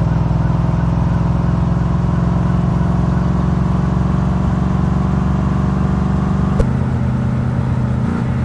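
A car engine drones steadily as the car drives along, then drops lower in pitch after a gear change.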